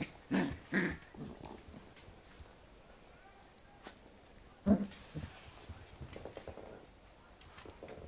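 A puppy gnaws and licks at a finger.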